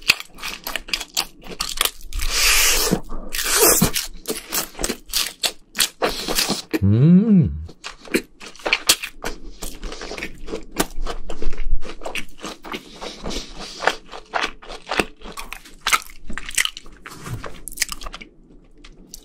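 A young man chews and crunches crispy fried food close to a microphone.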